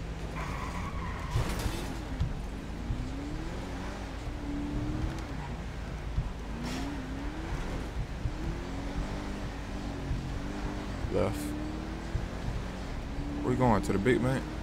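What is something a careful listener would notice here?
A car engine hums steadily as a car drives along a street.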